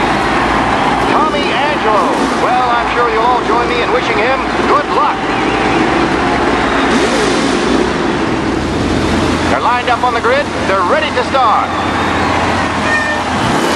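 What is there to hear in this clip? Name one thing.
Old racing car engines idle and rumble.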